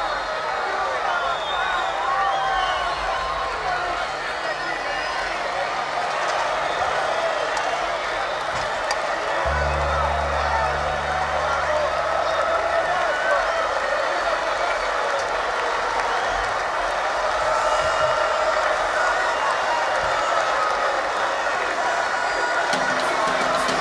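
A large crowd cheers and screams loudly in a big arena.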